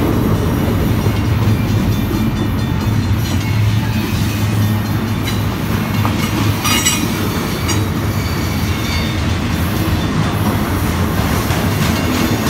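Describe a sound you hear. Train wheels clatter and squeal on the rails.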